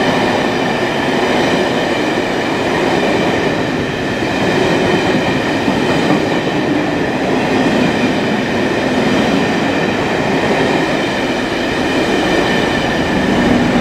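Train carriages rumble and clatter along the rails close by.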